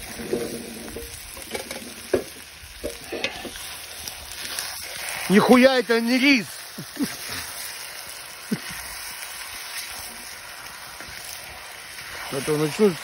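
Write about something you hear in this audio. A wood fire crackles.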